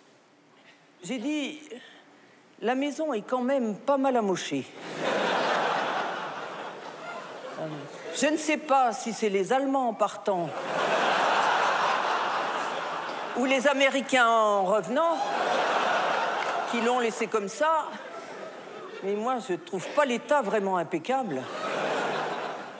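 A middle-aged woman speaks on stage through a microphone, with pauses.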